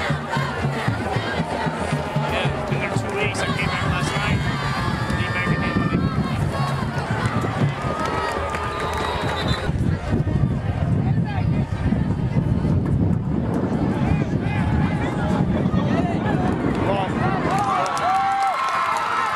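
A crowd of spectators cheers and chatters nearby outdoors.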